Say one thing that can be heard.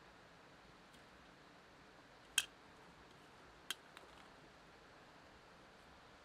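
Onion slices rustle softly as a hand drops them into a metal pot.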